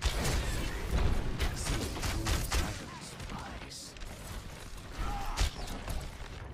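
Game weapon shots and impacts crack and thud.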